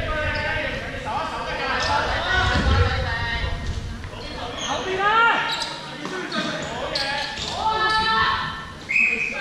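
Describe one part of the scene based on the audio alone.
Young men shout and call out to each other in a large echoing hall.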